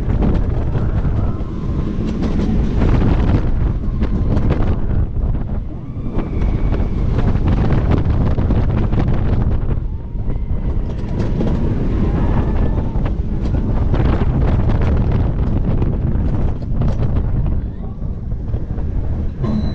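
A roller coaster train rattles and clatters along its track.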